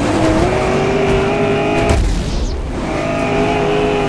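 Tyres skid and scrape over loose gravel.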